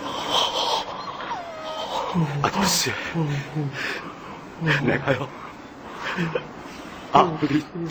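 A man sobs and cries out in distress, close by.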